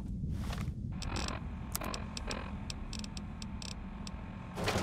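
Short electronic clicks tick in quick succession.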